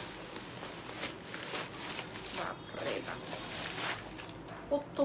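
Plastic wrapping rustles and crinkles in a hand.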